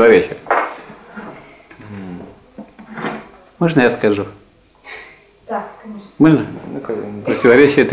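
A young man speaks calmly in a small echoing room.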